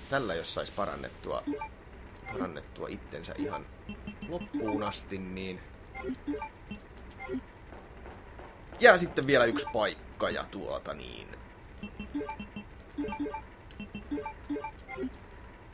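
A short electronic beep sounds as a menu choice is made.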